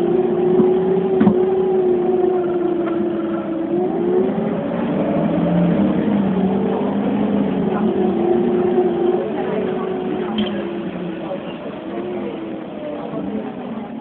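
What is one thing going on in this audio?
A bus engine hums and changes pitch as the bus drives.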